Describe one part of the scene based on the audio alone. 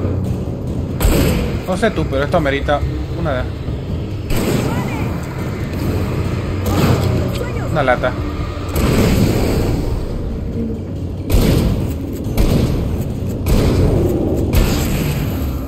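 Gunshots bang repeatedly.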